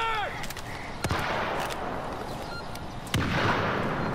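A pistol fires a few sharp shots.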